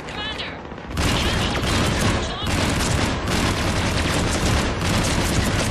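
Gunfire rattles rapidly and loudly.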